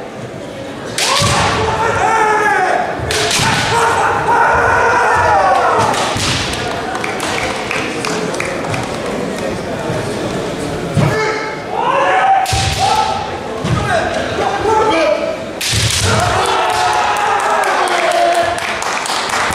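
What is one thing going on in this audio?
Fencers shout loud, drawn-out cries in a large echoing hall.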